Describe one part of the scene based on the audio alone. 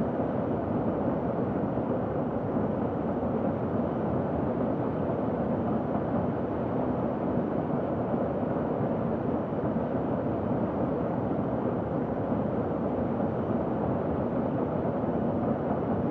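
A jet airliner's engines roar steadily.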